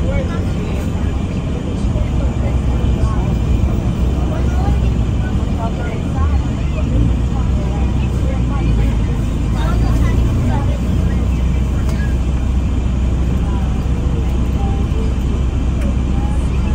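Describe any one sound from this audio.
A bus engine rumbles steadily with a low drone.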